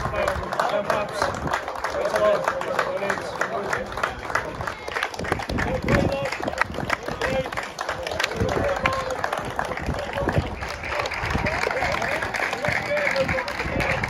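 A crowd claps and applauds steadily outdoors.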